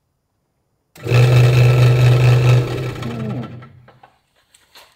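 A scroll saw motor hums steadily, then winds down.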